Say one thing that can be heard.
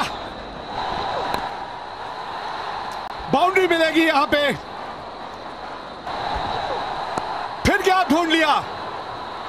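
A stadium crowd cheers and roars.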